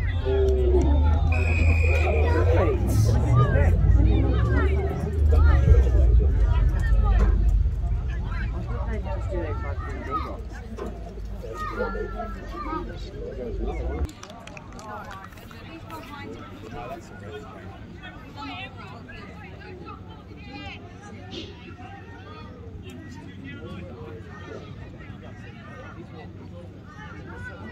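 Players call out to each other across an open field, some distance away.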